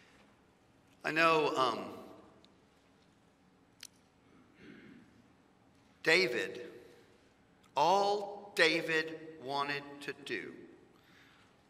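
A man speaks slowly into a microphone, with long pauses, in a room with a light echo.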